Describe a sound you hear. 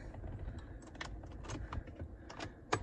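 A hand handles plastic parts of a steering wheel with light clicks.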